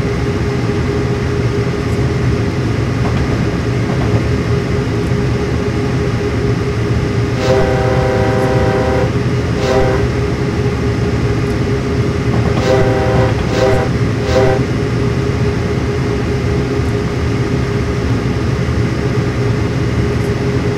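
A diesel locomotive rumbles steadily as it hauls a train.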